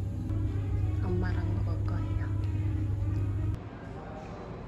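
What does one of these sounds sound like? A young woman talks close by in a calm, cheerful voice.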